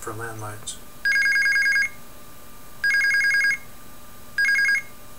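An electronic buzzer beeps in quick repeated pulses.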